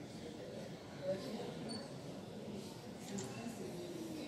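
Many people murmur and talk quietly in a large echoing room.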